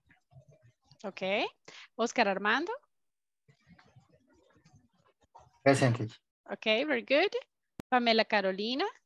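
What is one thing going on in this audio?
A woman speaks in short phrases through an online call.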